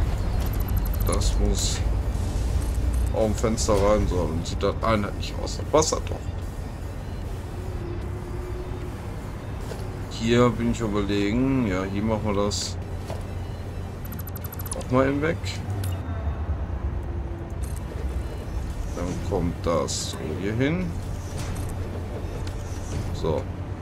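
A young man talks calmly into a close microphone, in bursts.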